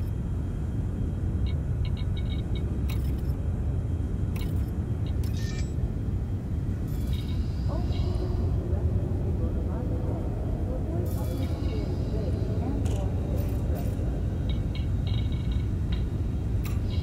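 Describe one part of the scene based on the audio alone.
A low engine hum drones steadily throughout.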